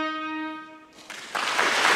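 A violin plays a sustained note.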